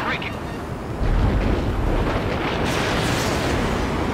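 Rockets and guns fire in a loud burst.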